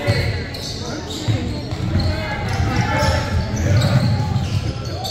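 Young men call out to each other across the echoing gym.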